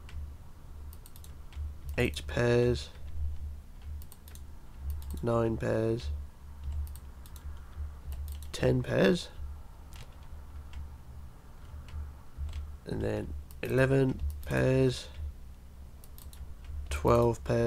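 Glass blocks are set in place with short, soft clicks.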